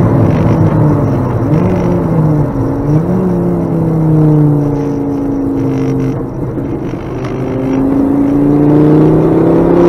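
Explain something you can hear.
Road noise rumbles steadily through the car.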